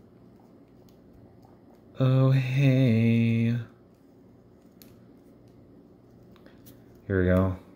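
Plastic joints of a small toy figure click softly as they are bent.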